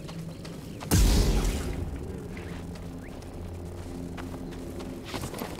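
A lightsaber ignites with a sharp burst and hums.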